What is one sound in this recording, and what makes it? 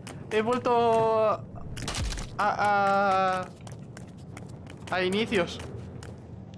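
A young man speaks loudly and with animation into a microphone.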